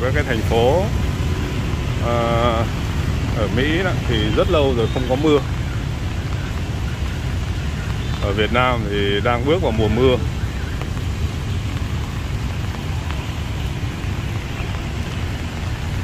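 Traffic hums and tyres hiss along a wet street nearby.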